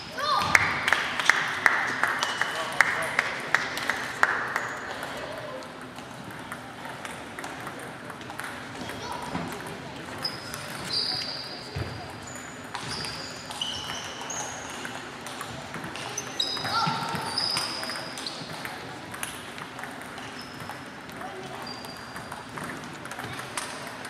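Ping-pong balls click against paddles and tables in a large echoing hall.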